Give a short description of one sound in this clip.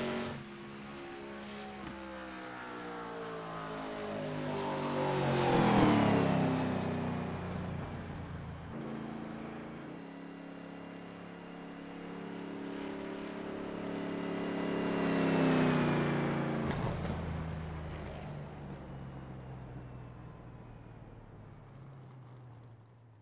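A race car engine drones loudly, swelling as the car passes close and falling in pitch as it moves away.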